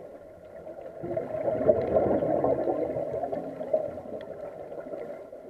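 Air bubbles from a diver's breathing gurgle and rumble underwater.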